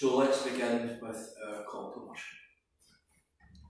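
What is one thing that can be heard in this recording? A middle-aged man speaks calmly in a room with a slight echo.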